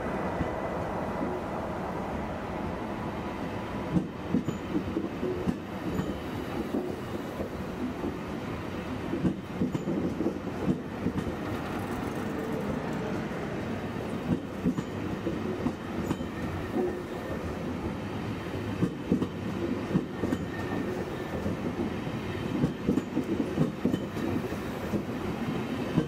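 A train rumbles steadily past, close by.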